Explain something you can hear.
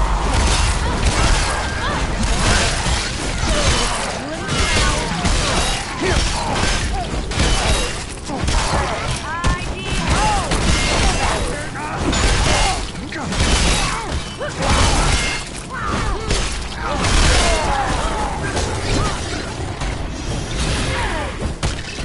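Weapons slash and thud repeatedly in a fierce melee fight.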